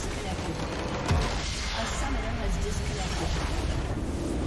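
A crystal structure shatters and crumbles with a loud crash.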